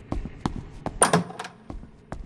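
A door swings open with a clunk.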